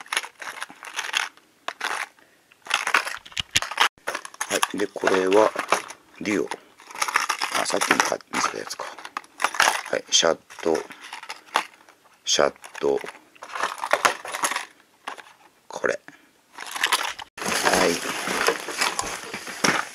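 Plastic packages clack as they are set down on a table.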